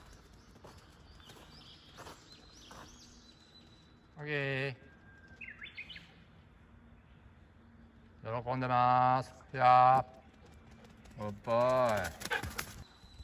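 A dog's paws patter across grass as it runs.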